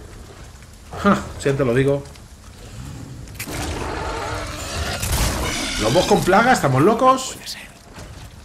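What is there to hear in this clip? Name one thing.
A large dog snarls and growls close by.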